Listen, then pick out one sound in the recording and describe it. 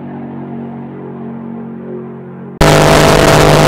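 A racing car's engine drones faintly as it speeds past in the distance.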